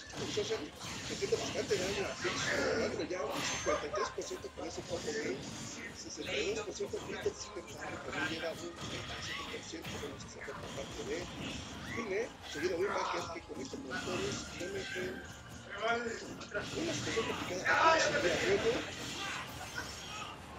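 Video game fighters land punches and blasts with sharp thumps and crackles.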